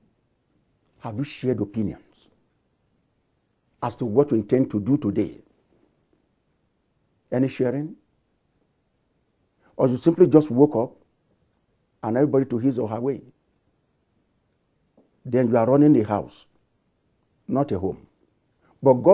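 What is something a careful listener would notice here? A middle-aged man speaks emphatically into a close microphone, in short bursts with pauses.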